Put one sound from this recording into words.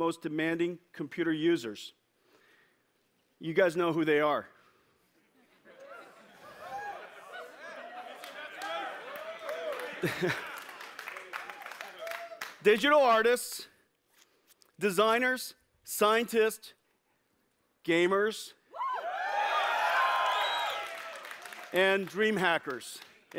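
A middle-aged man speaks with animation through a microphone to a large audience.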